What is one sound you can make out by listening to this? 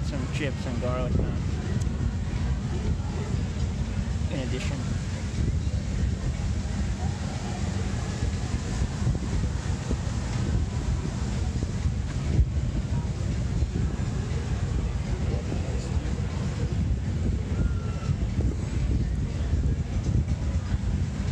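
Wind rumbles heavily against the microphone outdoors.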